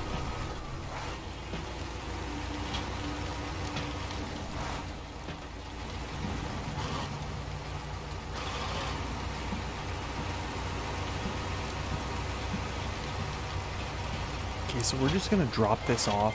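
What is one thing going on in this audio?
A heavy truck engine rumbles steadily as it drives over rough ground.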